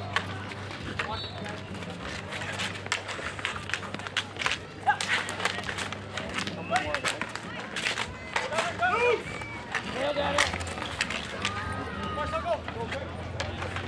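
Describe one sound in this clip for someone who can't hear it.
Street hockey sticks clack and scrape on asphalt.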